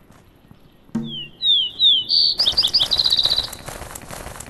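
A chicken squawks loudly.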